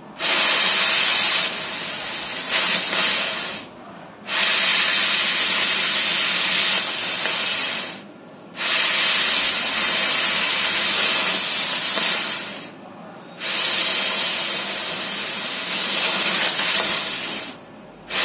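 A laser cutter hisses loudly in long bursts with short pauses between them.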